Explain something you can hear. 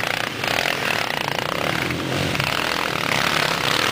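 A second dirt bike engine roars close by.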